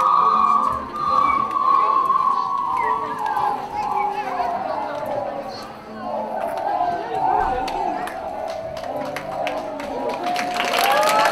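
A group of performers plays a melody on stage, echoing in a large hall.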